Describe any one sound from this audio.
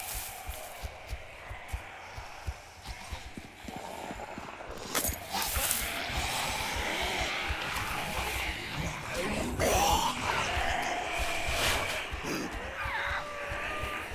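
Footsteps crunch through grass and dirt at a steady pace.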